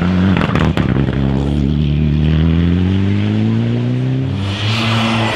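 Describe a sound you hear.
A rally car engine roars past at speed, rising in pitch as it accelerates.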